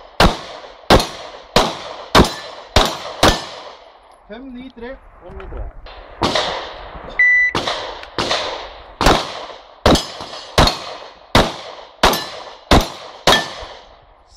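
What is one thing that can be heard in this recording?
A pistol fires rapid shots that echo outdoors.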